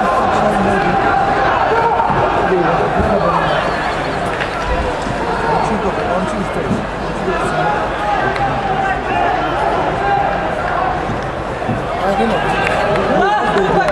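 Young men shout and argue on an open pitch.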